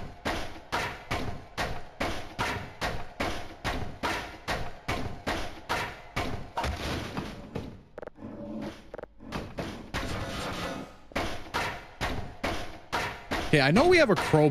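A crowbar bangs repeatedly on a wooden crate.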